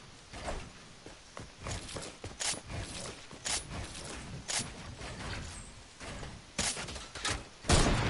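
Quick clicks and snaps of building pieces sound in a video game.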